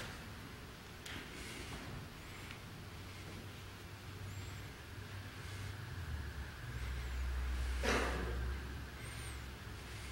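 Cloth rustles softly as it is folded.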